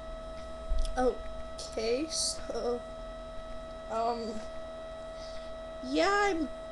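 A young woman speaks softly, close to the microphone.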